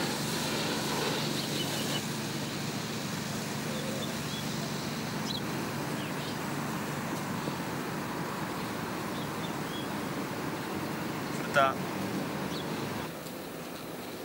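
Wind blows steadily across an open space.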